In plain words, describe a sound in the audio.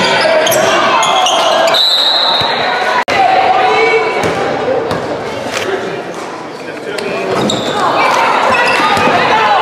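A crowd of spectators cheers and chatters in a large echoing gym.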